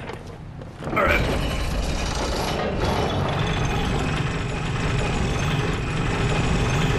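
A metal lift rumbles and creaks as it moves.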